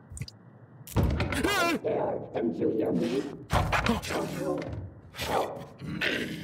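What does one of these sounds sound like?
A young man shouts loudly in fright.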